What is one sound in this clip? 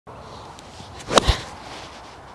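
A golf club swishes and strikes a ball with a sharp click.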